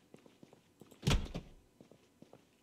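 A door thuds open.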